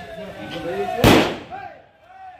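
A firecracker bangs loudly nearby.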